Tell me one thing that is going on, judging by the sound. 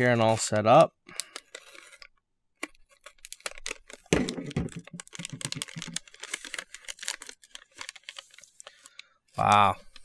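A foil packet crinkles and rustles as it is opened.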